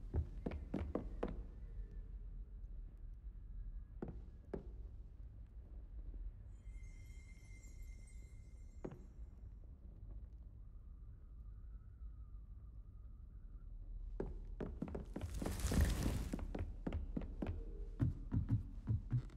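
Footsteps tap on a stone floor in an echoing hall.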